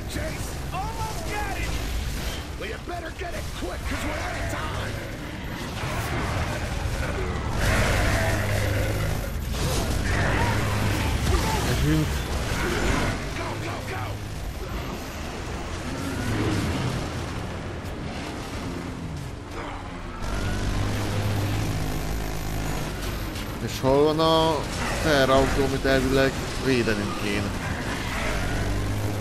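A man talks with animation close to a microphone.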